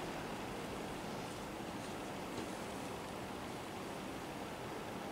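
Fabric rustles softly as hands handle it.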